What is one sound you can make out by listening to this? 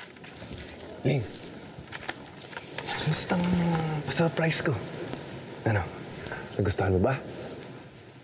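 A young man talks playfully and laughs softly close by.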